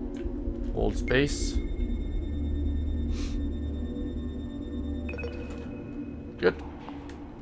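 An electronic scanner hums steadily and then chimes.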